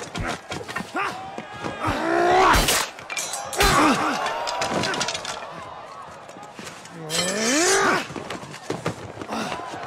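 Metal swords clang together.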